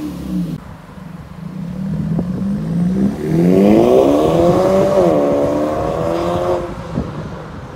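A car engine accelerates hard with a rising drone.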